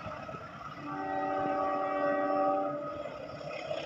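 A train horn sounds far off.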